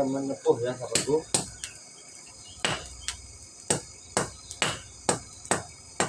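A hammer strikes hot metal on an anvil with sharp, ringing blows.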